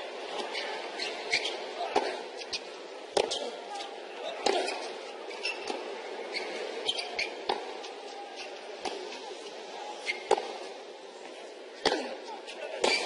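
A tennis ball is struck back and forth with sharp pops of racket strings.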